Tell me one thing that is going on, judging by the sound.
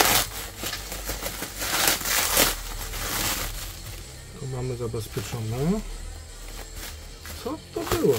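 Bubble wrap crackles softly under a hand.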